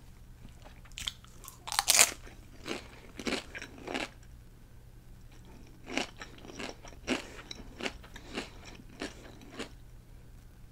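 A woman chews crunchy chips close to a microphone.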